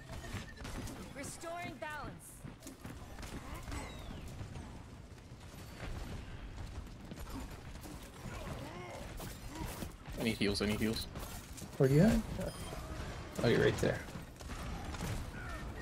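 Thrown blades whoosh and hit with sharp clicks in a video game.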